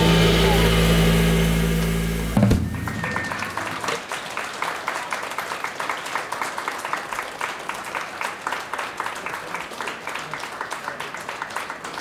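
An electric guitar plays chords.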